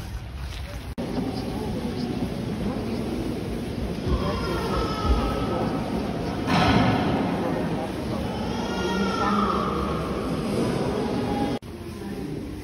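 A crowd of visitors murmurs and chatters in a large echoing hall.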